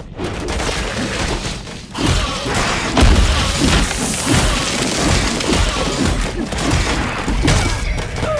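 Fiery explosions boom and roar.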